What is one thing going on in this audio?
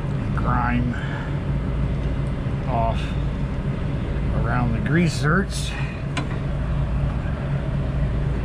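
A cordless grease gun whirs as it pumps grease into a fitting.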